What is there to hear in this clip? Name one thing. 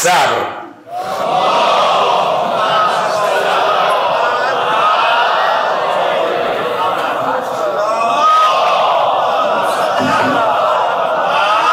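A large crowd of men murmurs prayers together in an echoing hall.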